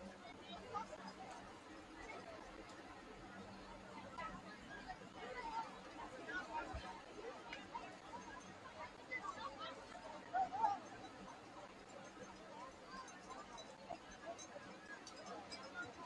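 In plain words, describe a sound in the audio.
A large crowd chatters and calls out across an open field outdoors.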